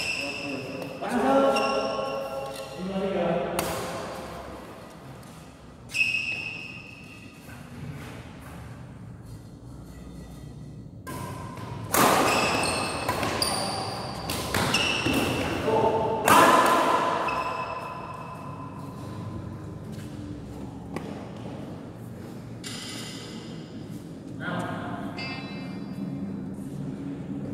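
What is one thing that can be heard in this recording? Young men call out to each other in a large echoing hall.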